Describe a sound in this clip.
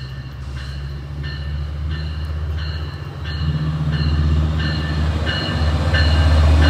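A diesel train engine rumbles as it approaches, growing louder.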